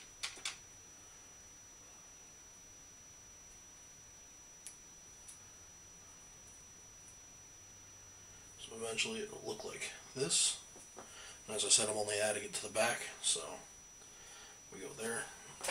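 Plastic wrap crinkles as hands handle it.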